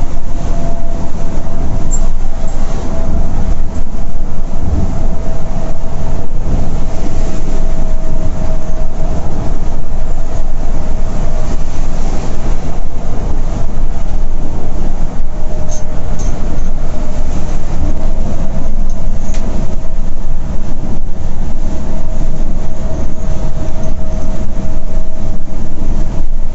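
A diesel coach engine drones at highway speed, heard from inside the cab.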